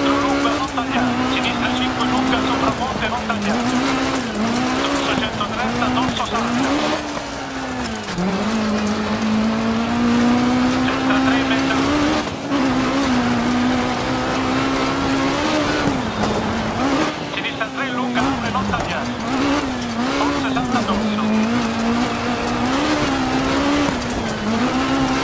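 Tyres crunch and hiss on a gravel road.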